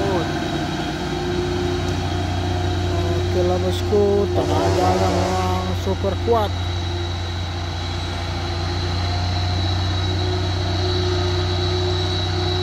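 A heavy truck engine rumbles steadily as the truck climbs a road.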